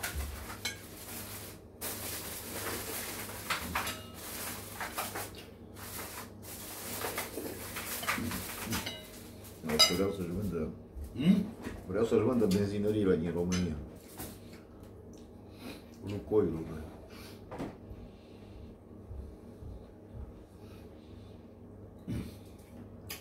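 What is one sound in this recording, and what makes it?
Spoons clink against plates.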